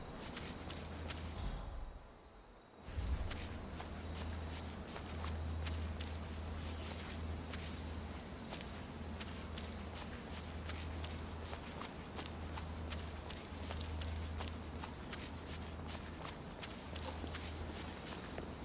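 Footsteps crunch through undergrowth at a steady walking pace.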